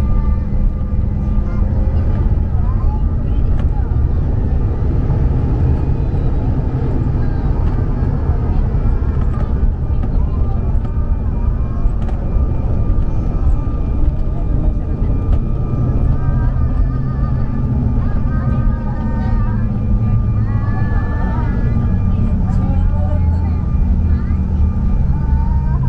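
Tyres rumble over a runway as a plane rolls along.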